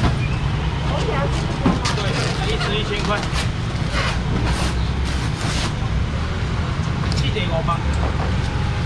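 A young man calls out loudly to customers.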